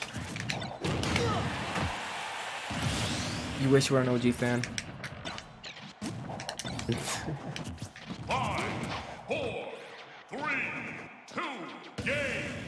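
Video game fight sounds of punches and blasts ring out.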